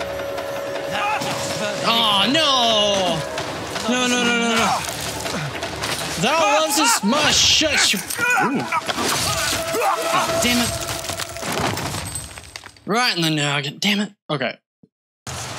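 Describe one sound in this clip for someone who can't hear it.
A young man talks and shouts excitedly into a close microphone.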